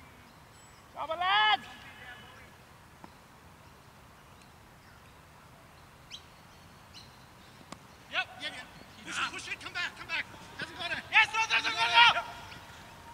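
Men shout out loudly across an open field.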